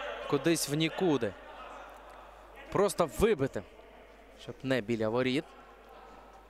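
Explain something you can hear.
Young men shout across an echoing indoor hall.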